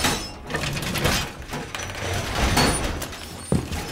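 A heavy metal panel clanks and slides into place against a wooden wall.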